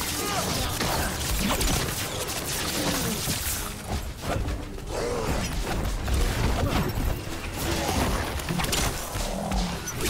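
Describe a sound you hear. Blades clash and strike repeatedly in a fast fight.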